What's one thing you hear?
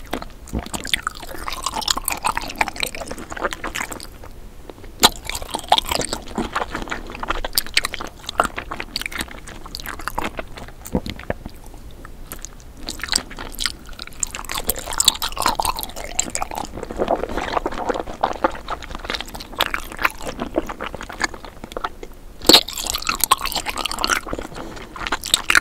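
A woman chews and smacks her lips close to a microphone.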